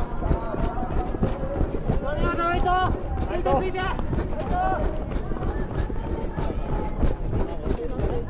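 Running footsteps slap steadily on a track.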